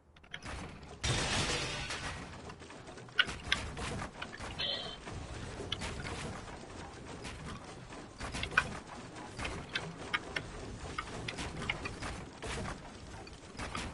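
Footsteps patter quickly on wooden floors.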